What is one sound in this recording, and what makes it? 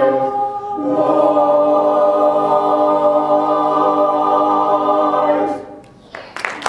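A choir sings a held chord in a large hall.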